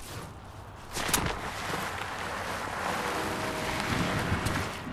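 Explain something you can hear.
Tall grass rustles as someone pushes through it.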